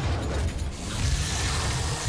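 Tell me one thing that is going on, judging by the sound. A monster snarls close by.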